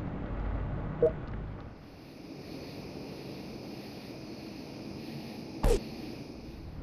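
Short game interface clicks sound now and then.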